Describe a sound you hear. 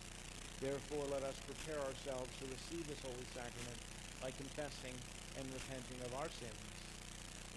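An adult man speaks calmly through a microphone in a large hall.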